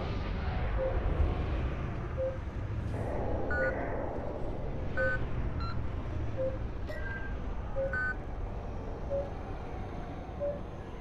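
A spacecraft engine hums with a low steady rumble.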